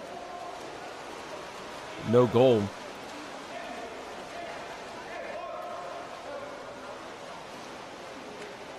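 Swimmers splash and churn through water in an echoing indoor pool.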